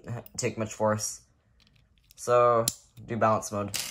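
Plastic parts of a spinning top click together in hands.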